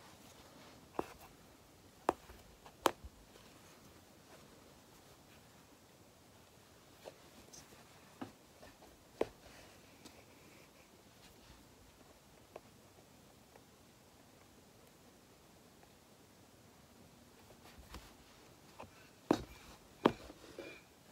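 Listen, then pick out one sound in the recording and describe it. Fingertips tap and brush against stretched cloth.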